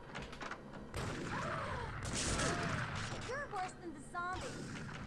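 A young woman shouts angrily.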